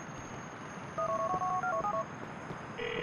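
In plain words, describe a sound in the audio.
A mobile phone beeps a quick string of dialling tones.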